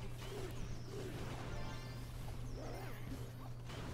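A star chime rings out.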